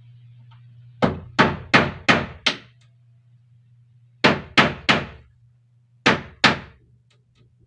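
A hammer bangs on wood in quick bursts of blows.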